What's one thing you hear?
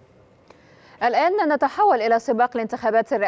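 A young woman speaks clearly into a microphone, as if reading out news.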